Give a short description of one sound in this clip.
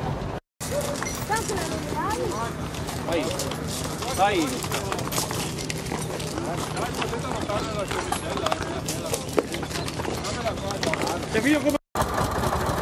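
Oxen hooves crunch on gravel.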